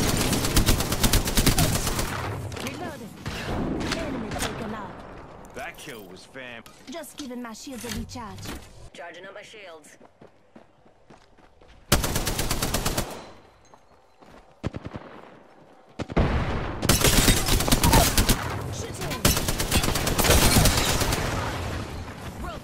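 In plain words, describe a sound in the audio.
Automatic rifle gunfire rattles in rapid bursts.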